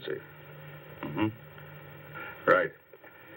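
A man speaks firmly, close by.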